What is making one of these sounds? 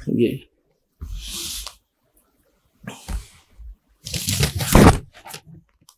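Paper pages rustle as a book's pages are turned by hand.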